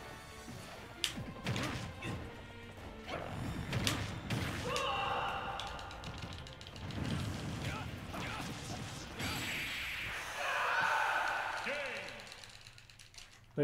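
Punches, slashes and blasts from a video game fight crash in quick bursts.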